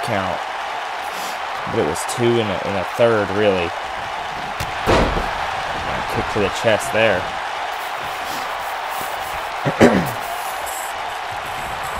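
A large crowd murmurs and cheers steadily in a big arena.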